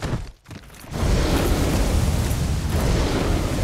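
A fire roars steadily.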